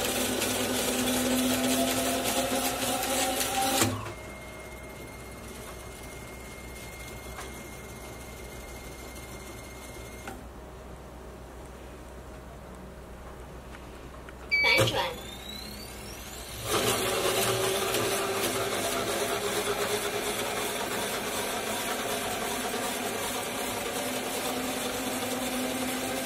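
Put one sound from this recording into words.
A machine hums as reels of tape wind.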